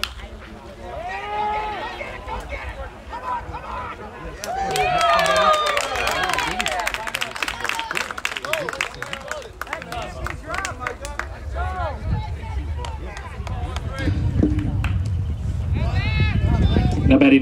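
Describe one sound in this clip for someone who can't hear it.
Distant young men shout and call out across an open field.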